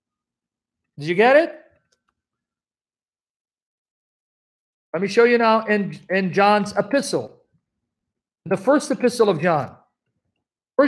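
A man speaks calmly and close by, in short bursts with pauses, heard through a computer microphone.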